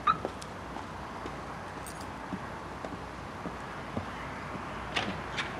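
Footsteps thud slowly on a wooden deck.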